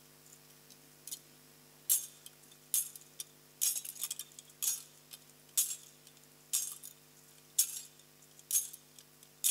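A metal censer clinks on its chains as it swings in a steady rhythm.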